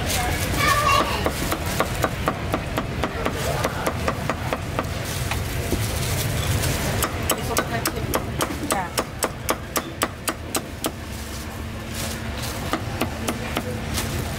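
A cleaver chops rapidly on a wooden board.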